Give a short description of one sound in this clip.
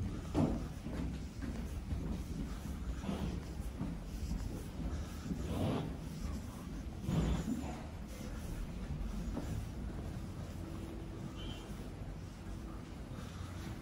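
Footsteps tap on a hard floor while walking.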